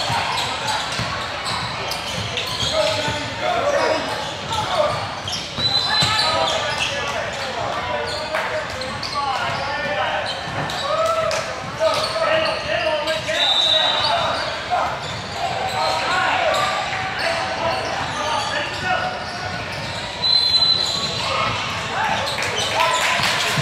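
Spectators, adults and children, shout and cheer in a large echoing gym.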